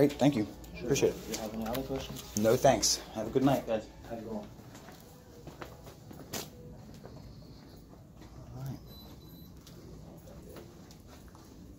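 Footsteps walk along a hallway.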